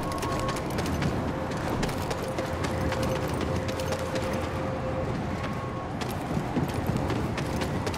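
Footsteps run quickly on a hard stone floor.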